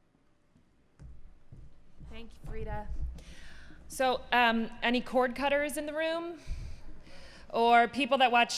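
A young woman speaks calmly into a microphone over loudspeakers.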